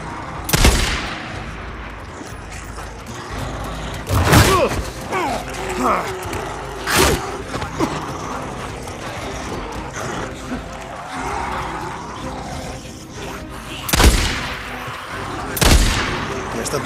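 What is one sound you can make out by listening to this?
A rifle fires loud, sharp shots that echo outdoors.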